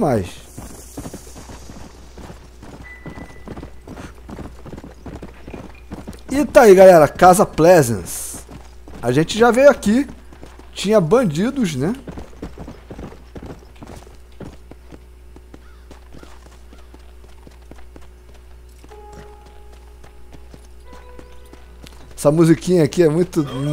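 A horse gallops, its hooves drumming steadily on a dirt trail.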